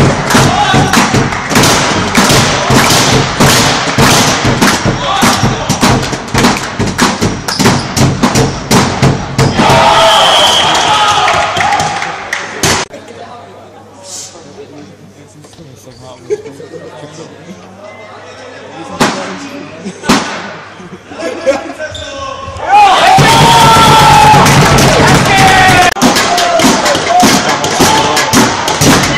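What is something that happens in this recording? A crowd of young men cheers and shouts in a large echoing hall.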